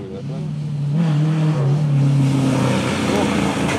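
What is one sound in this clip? A car engine approaches from a distance, growing louder.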